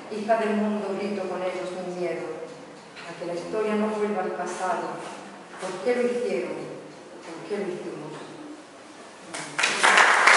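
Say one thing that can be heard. A middle-aged woman reads aloud through a microphone in an echoing room.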